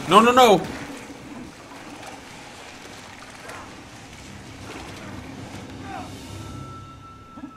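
Water rushes and splashes.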